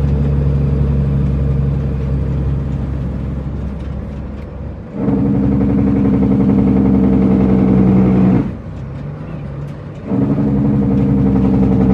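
A truck's diesel engine rumbles and revs up and down as gears shift.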